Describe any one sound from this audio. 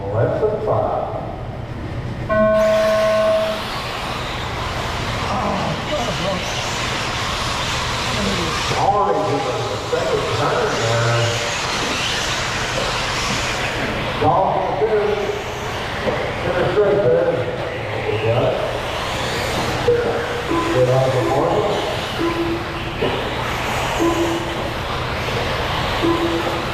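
Small electric racing cars whine as they speed around a dirt track.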